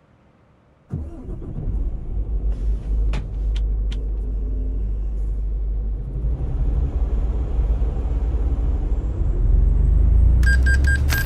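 A truck engine rumbles low and grows louder.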